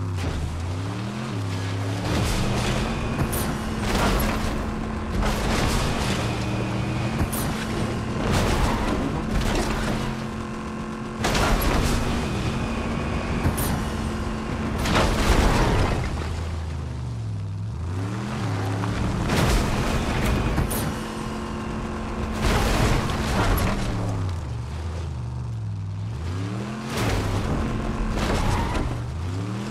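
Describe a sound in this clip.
A car engine roars and revs up and down as it speeds along.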